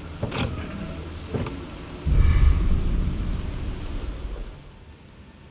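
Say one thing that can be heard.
A wooden chest lid creaks open.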